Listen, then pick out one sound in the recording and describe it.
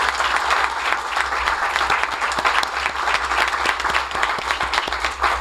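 An audience applauds steadily in a hall.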